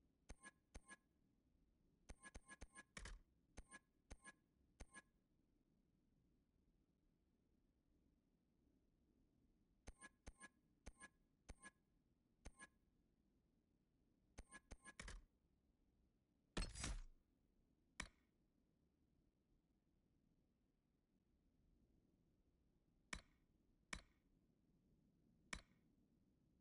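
Short chiming menu clicks tick in quick bursts as options change.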